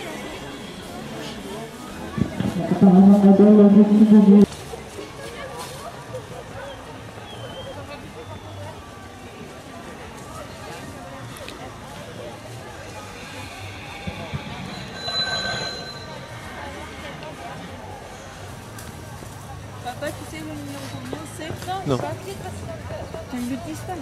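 Horse hooves crunch through dry leaves.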